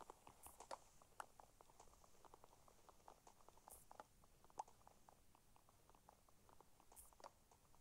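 Wood knocks and cracks in quick, repeated taps as blocks are broken.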